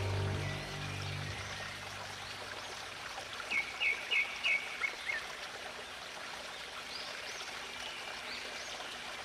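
Waterfalls rush and splash steadily into a pool.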